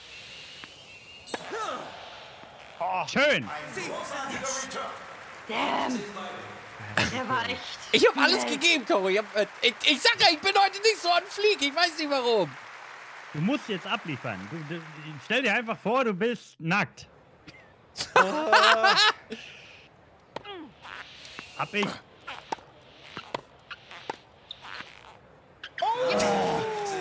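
A tennis ball is struck with a racket.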